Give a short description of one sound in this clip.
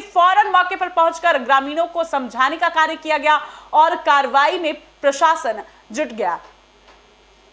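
A woman speaks loudly and agitatedly close by.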